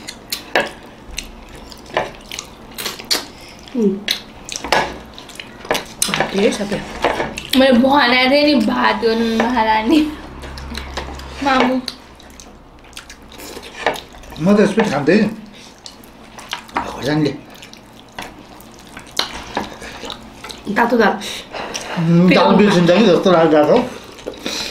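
People chew and smack their lips while eating.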